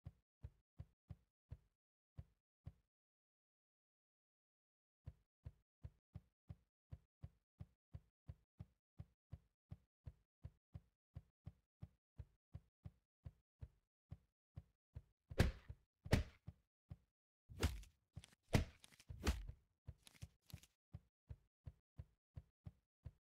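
Quick, soft footsteps tap at a steady pace.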